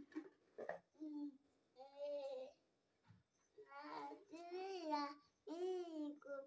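A young child speaks and sings playfully, close by.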